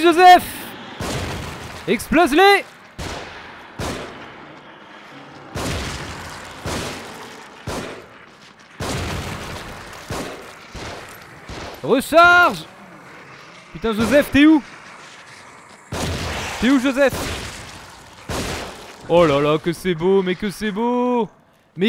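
Gunshots ring out again and again.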